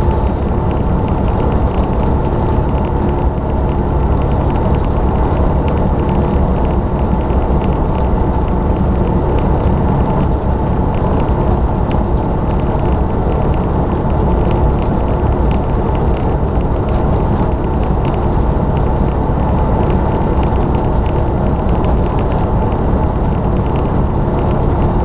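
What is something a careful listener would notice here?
Wind buffets loudly outside the cab.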